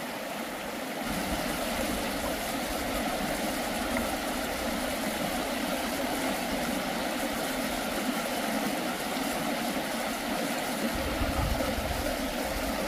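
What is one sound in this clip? Water splashes and drips as moss is squeezed out by hand.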